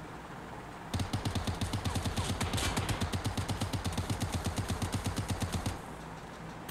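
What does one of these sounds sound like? A rifle fires in a rapid, rattling burst.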